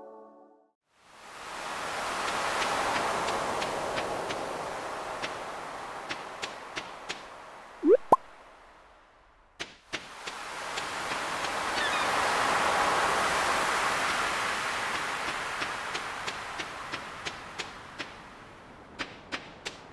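Footsteps tap lightly on sand.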